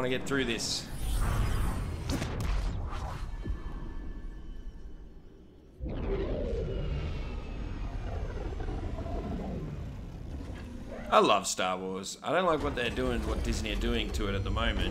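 A spaceship's engines rumble and roar.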